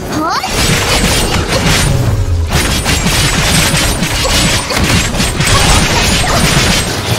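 Sword slashes and magic blasts crash rapidly in a game battle.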